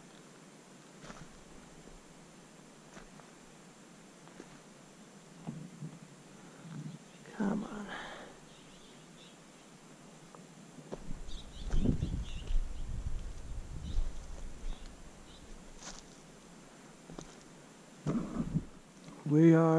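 A trekking pole taps and scrapes on rocky ground.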